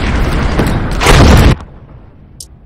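A loud blast booms close by.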